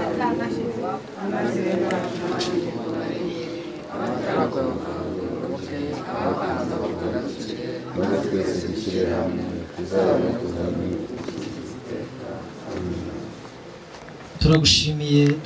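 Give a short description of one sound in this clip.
A crowd of men and women sings together.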